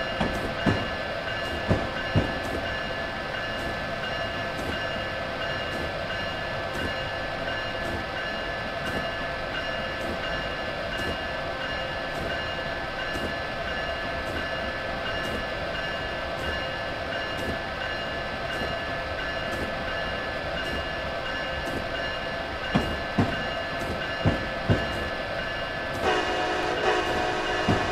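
A train's electric motor hums steadily.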